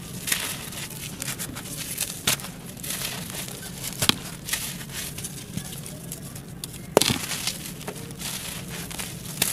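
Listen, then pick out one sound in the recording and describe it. Dry soil crumbles and trickles through fingers close up.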